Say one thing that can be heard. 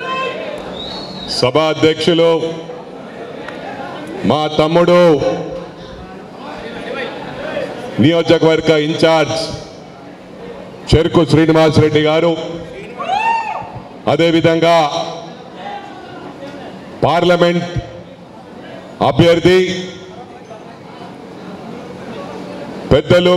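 A man speaks loudly and with animation into a microphone over loudspeakers, in short bursts.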